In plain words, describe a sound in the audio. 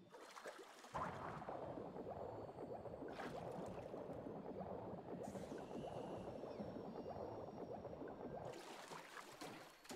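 Muffled water rushes and swirls underwater.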